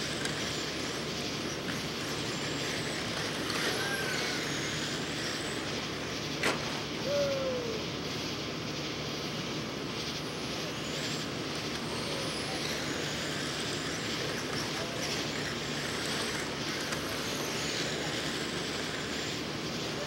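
Small electric cars whine as they race around a dirt track outdoors.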